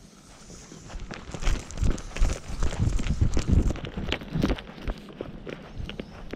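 Hands rub and rustle against a leash and jacket close by.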